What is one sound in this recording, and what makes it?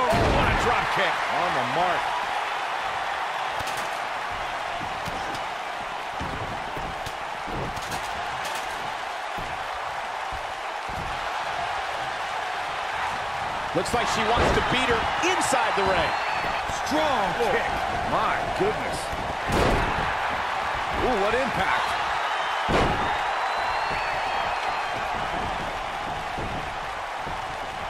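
A large arena crowd cheers and roars.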